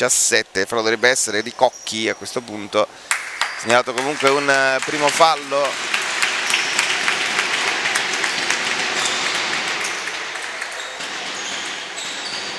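Basketball shoes squeak on a hard court floor.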